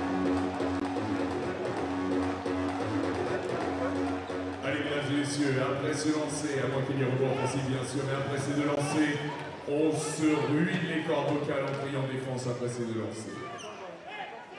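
A large crowd chants and sings loudly in an echoing arena.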